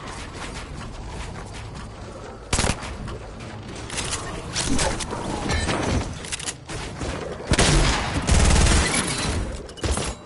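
Wooden building pieces clack into place in quick bursts.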